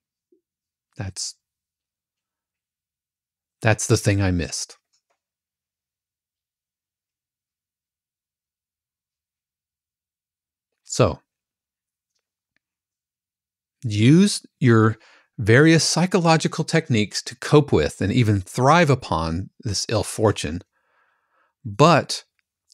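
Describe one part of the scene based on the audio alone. A man speaks calmly and close into a microphone, with long pauses.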